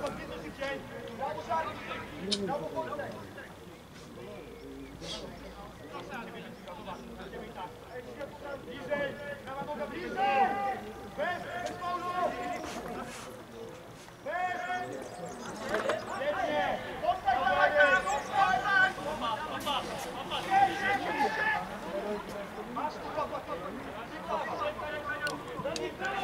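Men shout to one another across an open field.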